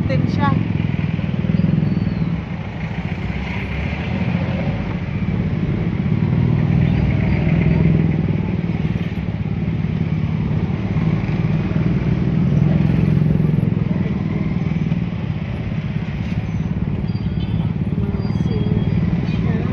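Traffic engines hum along a busy street outdoors.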